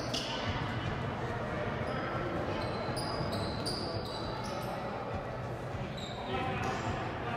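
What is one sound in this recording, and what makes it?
A small crowd murmurs in a large echoing gym.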